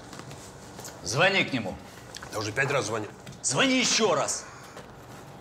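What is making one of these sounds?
A middle-aged man speaks loudly and with animation into a microphone.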